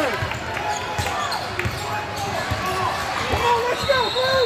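A basketball bounces with dull thumps.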